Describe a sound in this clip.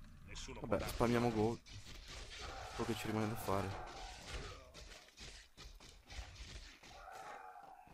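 Weapons clash and clatter in a fantasy battle.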